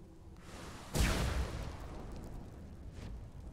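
A magic blast whooshes loudly.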